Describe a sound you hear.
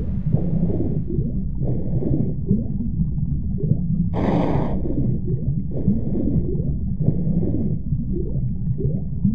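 Deep underwater rumbling drones steadily.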